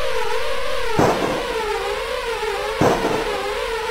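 A pistol fires two sharp shots.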